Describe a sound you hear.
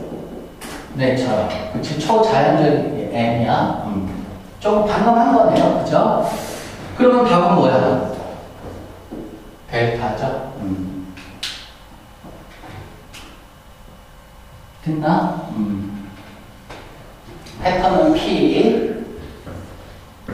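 A young man speaks calmly, explaining.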